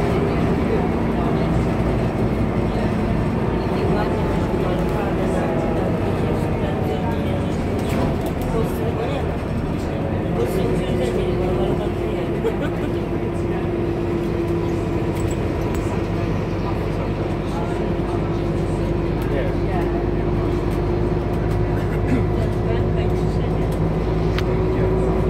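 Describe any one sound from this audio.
The bus interior rattles and clicks as it moves.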